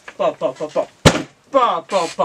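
A teenage boy claps his hands once.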